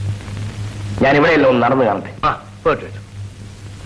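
A second man answers with animation, close by.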